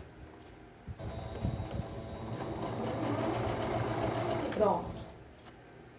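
A sewing machine runs, stitching with a steady whirring hum.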